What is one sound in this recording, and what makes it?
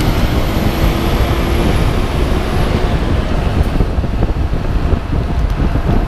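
A heavy truck's engine rumbles past close by.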